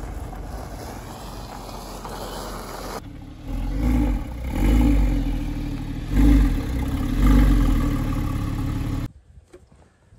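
A sports car engine idles and revs in deep bursts.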